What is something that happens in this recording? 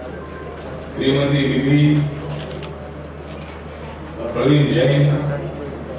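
A man reads out a speech through a microphone and loudspeakers, with pauses.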